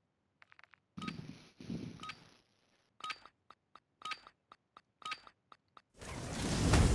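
Short electronic beeps count down at a steady pace.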